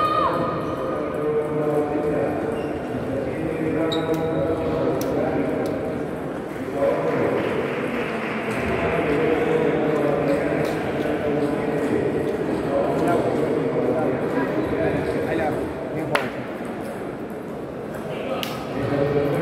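Ping-pong balls click on tables nearby and far off.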